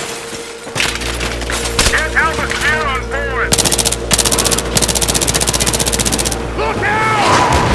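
Rapid gunfire rattles loudly at close range.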